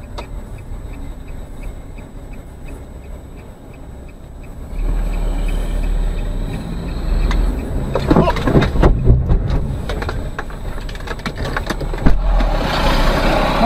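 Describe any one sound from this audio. A car engine rumbles from inside the car and grows louder as the car pulls away and turns.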